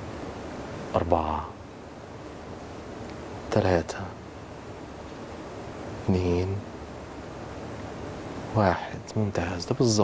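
A man sings short, wavering phrases close to a microphone, with quiet pauses between them.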